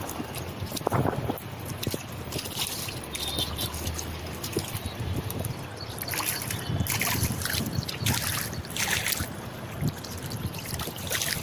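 Small waves lap and splash on open water.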